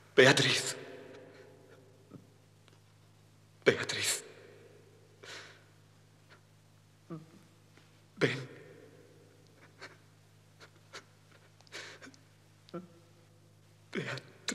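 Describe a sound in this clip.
A man speaks slowly and dramatically, close by.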